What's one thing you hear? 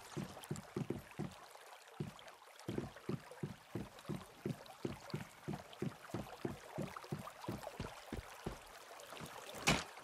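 Footsteps thud quickly on wooden boards.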